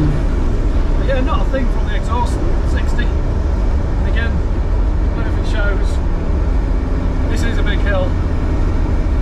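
A man speaks casually nearby.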